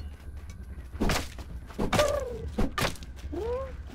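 A wooden club strikes wood with heavy thuds.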